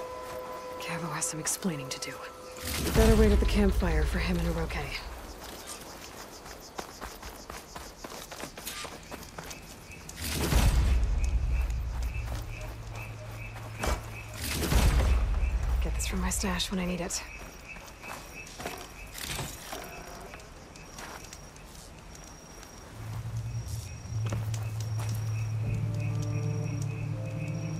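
Footsteps tread on grass and dirt.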